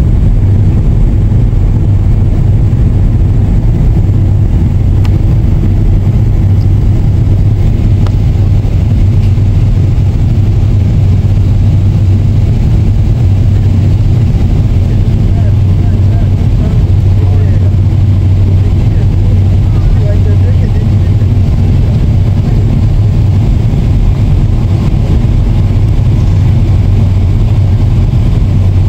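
A jet's engines roar in a loud, steady low drone inside the cabin.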